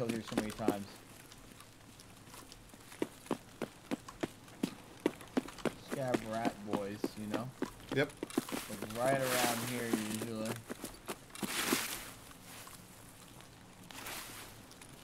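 Footsteps rustle through grass and brush.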